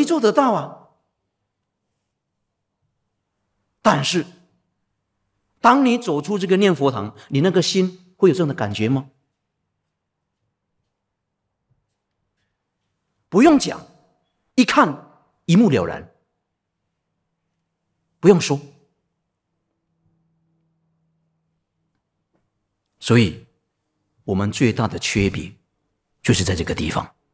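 A middle-aged man speaks calmly into a microphone, in short phrases with long pauses.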